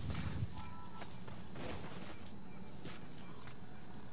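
A body thuds onto the ground.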